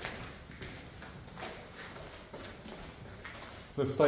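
Footsteps crunch on a gritty concrete floor.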